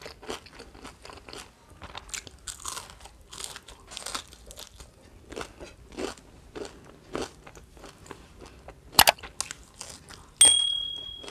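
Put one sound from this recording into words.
A woman chews food noisily, close to the microphone.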